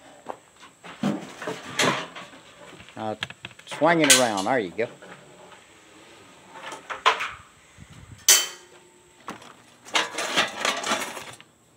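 A wooden frame knocks and clatters against a hand truck.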